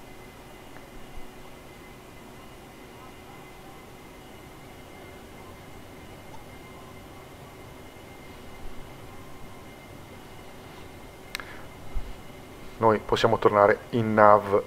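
A jet engine hums steadily inside a cockpit.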